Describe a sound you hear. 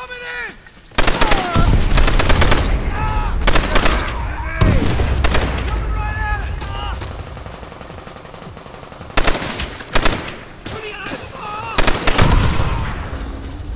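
A machine gun fires in loud bursts.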